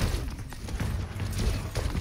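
Weapon shots fire in quick bursts.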